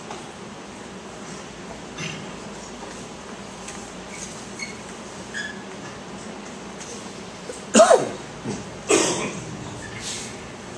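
A man sobs and sniffs with emotion.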